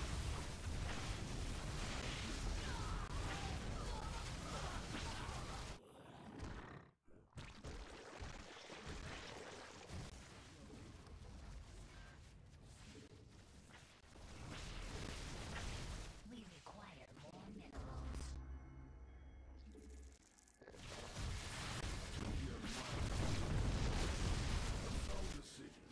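Game battle effects crackle and boom as units fight.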